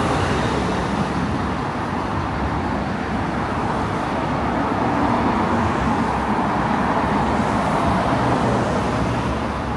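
Cars drive past on a road with a steady rushing of tyres.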